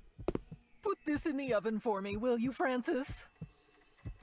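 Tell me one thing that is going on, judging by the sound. An elderly woman speaks in an exaggerated, cackling cartoon voice.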